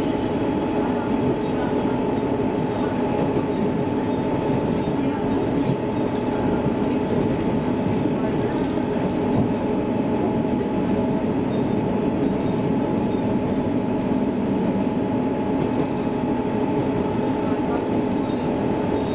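A train's wheels rattle and clatter over the rails.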